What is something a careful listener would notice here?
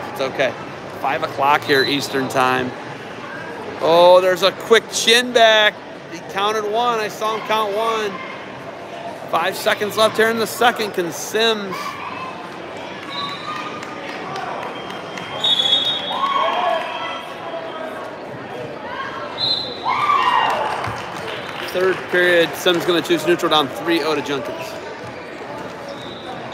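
Adult voices shout encouragement in a large echoing hall.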